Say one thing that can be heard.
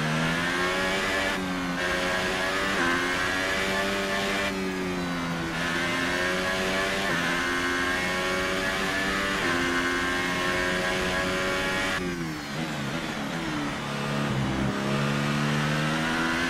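A racing car engine screams at high revs, rising and dropping in pitch with each gear change.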